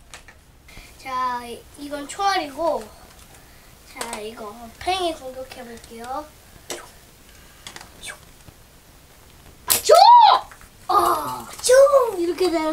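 A young boy talks with animation close by.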